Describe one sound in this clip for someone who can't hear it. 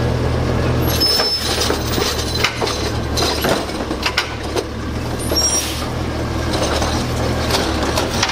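A garbage truck engine idles with a low rumble.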